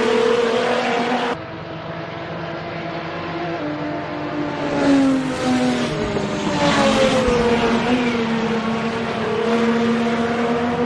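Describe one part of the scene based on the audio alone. A race car engine roars and drones, its pitch rising and falling as it shifts and slows through corners.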